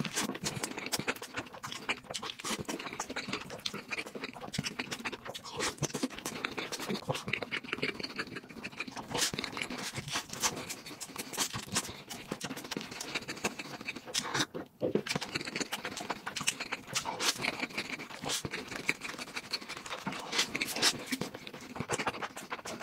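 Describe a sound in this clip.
A young man chews crunchy fried food loudly and close to a microphone.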